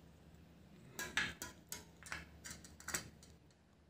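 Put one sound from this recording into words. A small plastic tool clicks and taps against a bicycle wheel.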